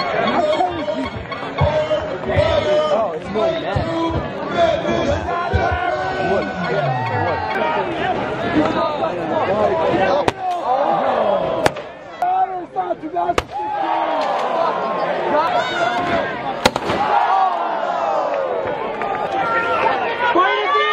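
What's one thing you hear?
A large crowd outdoors shouts, cheers and chants.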